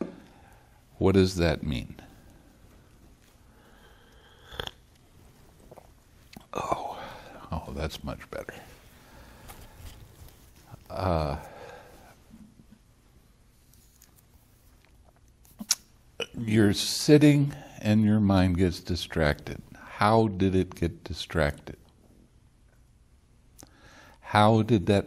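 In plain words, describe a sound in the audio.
An elderly man speaks calmly and with pauses, close to a microphone.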